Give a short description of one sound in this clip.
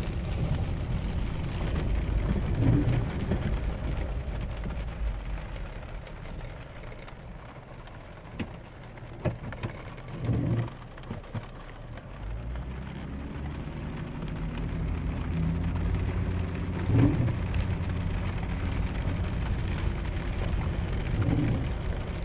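A car engine rumbles steadily.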